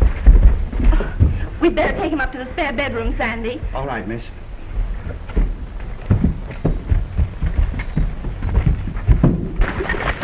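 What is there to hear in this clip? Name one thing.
Footsteps thud up wooden stairs.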